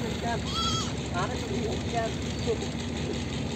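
A goat bleats nearby.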